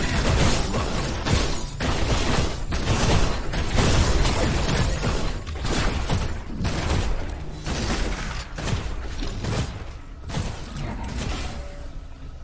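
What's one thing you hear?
Video game gunfire and ability effects blast and crackle.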